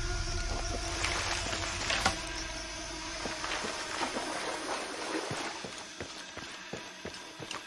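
Footsteps crunch on dirt and stones.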